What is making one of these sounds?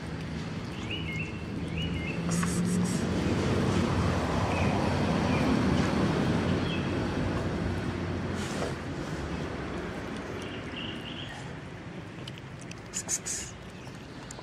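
Several cats chew and lap wet food.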